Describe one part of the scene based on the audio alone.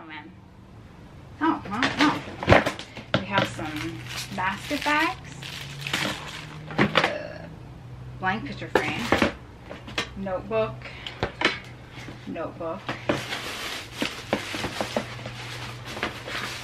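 Items rustle and clatter as they are pulled from a plastic bin.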